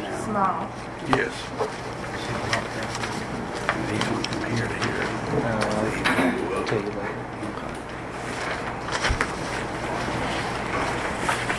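Papers rustle and shuffle close by.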